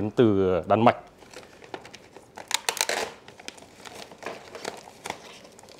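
Plastic sheeting rustles and crinkles as it is handled.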